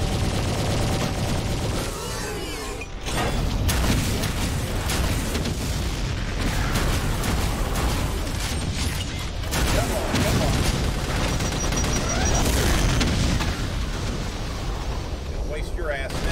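Gunfire and explosions from a video game boom loudly.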